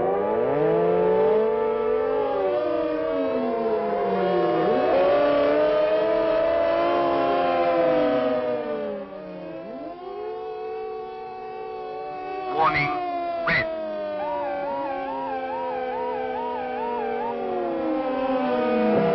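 Several sirens wail loudly, rising and falling in pitch and overlapping.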